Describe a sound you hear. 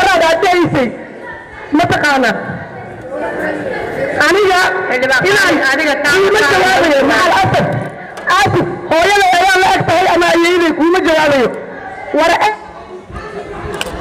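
A young woman speaks with animation into a microphone, heard through loudspeakers in a large room.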